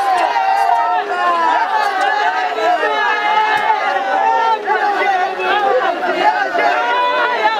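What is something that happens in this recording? A large crowd of men and women shouts and sings loudly all around, close by.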